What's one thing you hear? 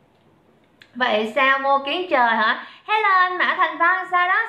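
A young woman speaks close by, bright and animated.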